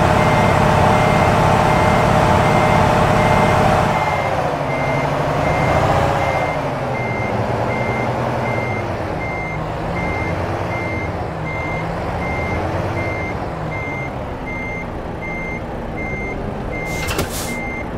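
A truck engine rumbles steadily, louder at first and then settling lower.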